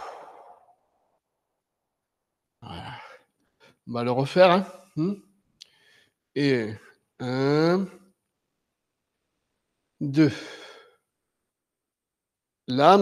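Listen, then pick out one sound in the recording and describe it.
An elderly man calls out instructions in short bursts with pauses.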